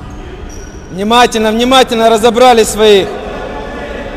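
A man shouts loudly in an echoing sports hall.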